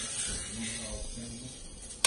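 Batter pours into a pan.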